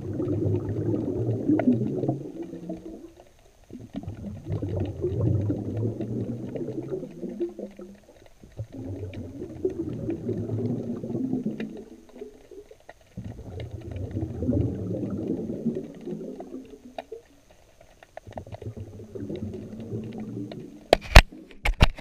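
Water surges and rumbles in slow, muffled waves.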